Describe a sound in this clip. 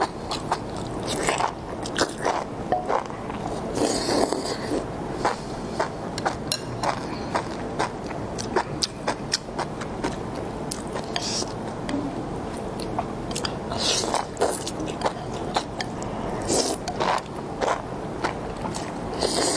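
A young woman chews food wetly, close to the microphone.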